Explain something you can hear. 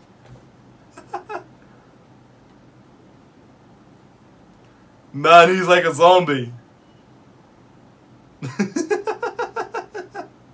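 A young man laughs softly close to a microphone.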